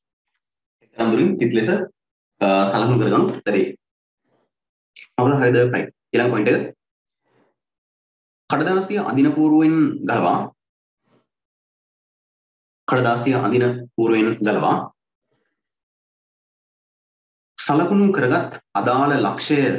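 A man talks calmly in short bursts, close by.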